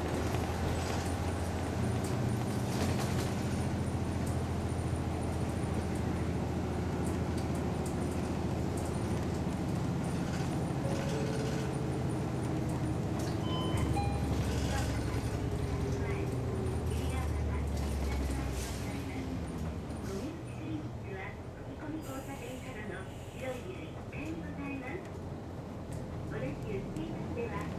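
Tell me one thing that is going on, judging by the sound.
A bus engine rumbles low and steady, then eases off.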